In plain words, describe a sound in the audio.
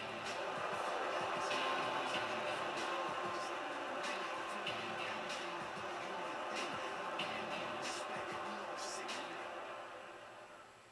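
A large crowd cheers and roars, heard through a television speaker.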